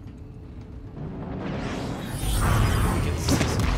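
A spaceship roars past with a rising rush.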